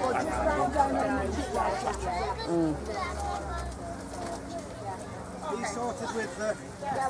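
A woman speaks aloud outdoors, announcing nearby.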